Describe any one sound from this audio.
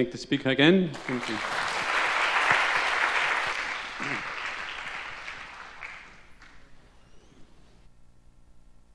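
An audience applauds in a large hall, then the applause fades.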